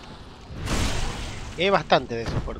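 A sword slashes into an enemy with a wet thud.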